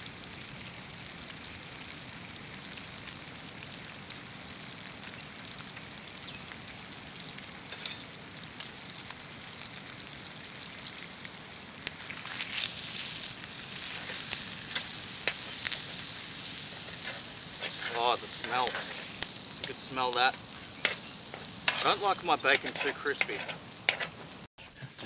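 Meat sizzles on a hot grill.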